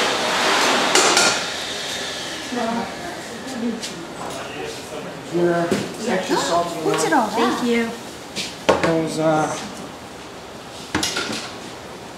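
Metal trays and dishes clatter.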